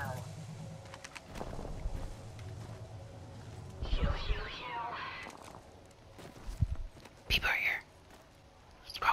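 A gun clicks and rattles as it is handled.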